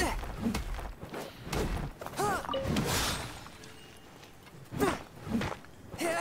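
A sword slashes and strikes crystal with a sharp, ringing crack.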